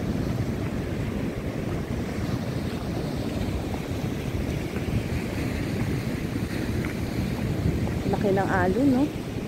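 Waves break and wash against rocks.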